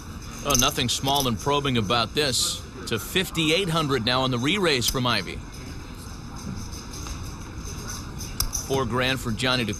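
Poker chips clack together on a table.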